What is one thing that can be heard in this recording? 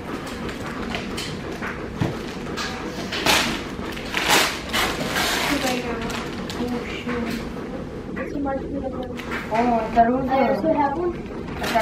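Wrapping paper rustles and tears as a gift is unwrapped.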